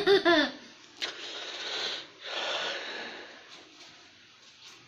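A young boy slurps a drink through a straw.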